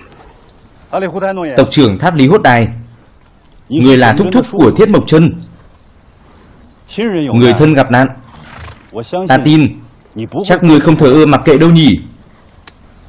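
A man speaks calmly and firmly nearby.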